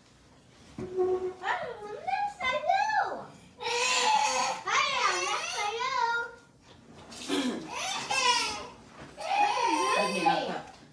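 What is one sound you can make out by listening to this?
A little girl talks in a high voice.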